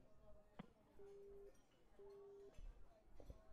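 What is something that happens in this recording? A phone gives two short electronic beeps.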